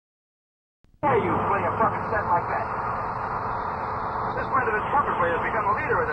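A middle-aged man speaks with animation, heard through an old recording.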